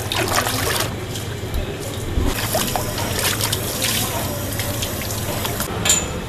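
Water bubbles and churns in a tub.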